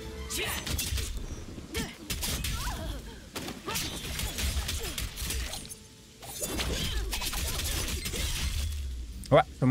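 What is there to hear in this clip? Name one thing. Spells and blows crackle and burst in a fight.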